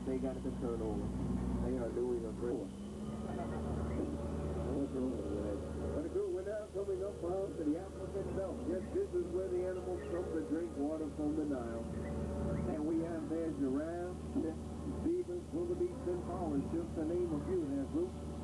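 A boat motor hums steadily.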